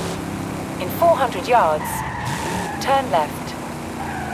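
Tyres squeal briefly as a car brakes into a bend.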